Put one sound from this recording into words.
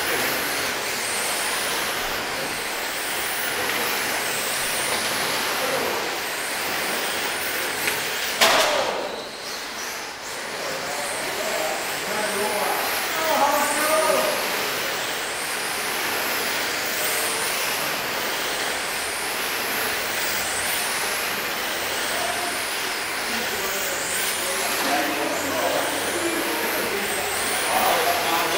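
Hard tyres rattle and skid on the track.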